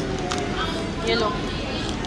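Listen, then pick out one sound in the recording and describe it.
A toddler babbles softly close by.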